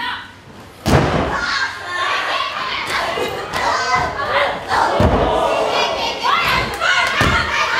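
Bodies slam heavily onto a wrestling ring mat with loud thuds.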